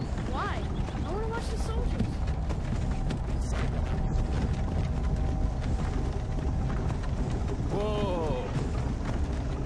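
A wooden cart rumbles steadily along a rough road.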